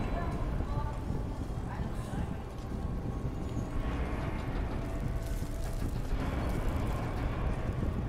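Metal gears grind and clank as a mechanism rotates.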